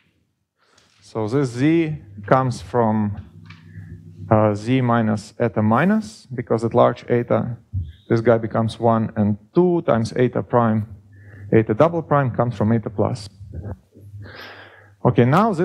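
A young man lectures calmly through a headset microphone.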